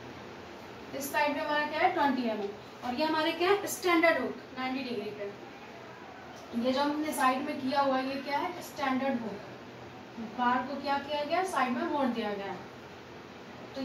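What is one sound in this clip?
A young woman speaks calmly and clearly, as if explaining, close by.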